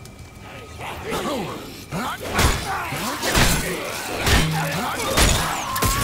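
A creature screeches and snarls.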